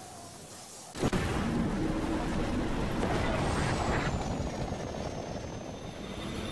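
A loud burst of rushing energy roars as a game character lands.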